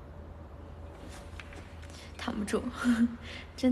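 A young woman speaks and laughs close by.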